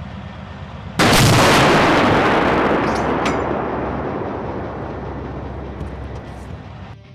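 A tank cannon fires with a loud boom that rolls away slowly.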